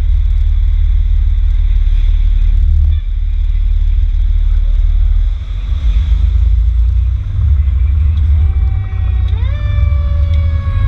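A motorcycle engine rumbles steadily close by.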